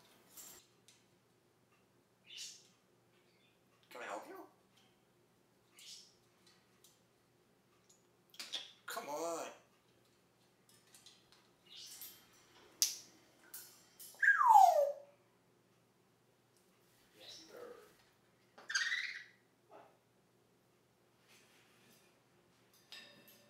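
An African grey parrot squawks and mimics speech in short bursts.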